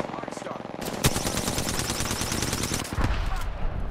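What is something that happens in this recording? A rapid burst of gunfire rattles loudly.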